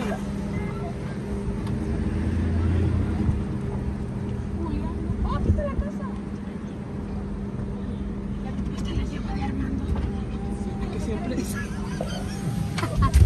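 A car engine hums steadily from inside the vehicle as it drives slowly.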